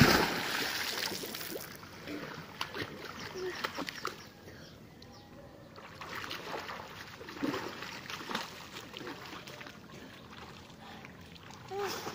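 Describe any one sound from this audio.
Water splashes as a boy swims and paddles.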